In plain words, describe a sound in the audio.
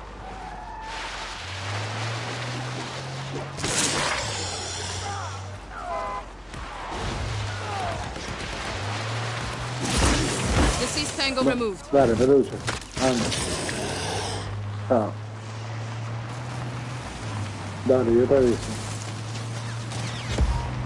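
Tyres crunch over gravel and dirt.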